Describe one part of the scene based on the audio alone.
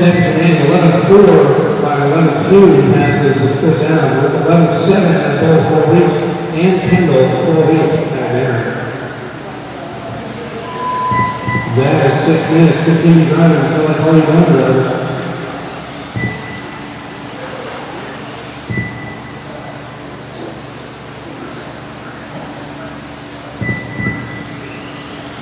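Small electric model cars whine and rev as they race around.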